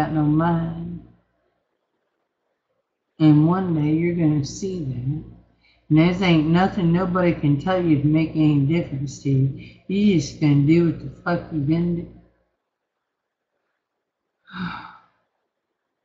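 A middle-aged woman talks calmly and close to a microphone.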